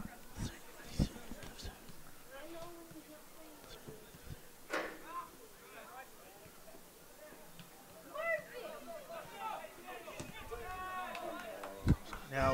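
A ball is kicked with dull thumps on an open field.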